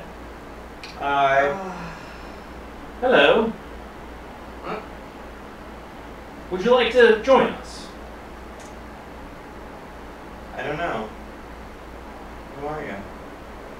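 Several men talk and laugh in short bursts nearby.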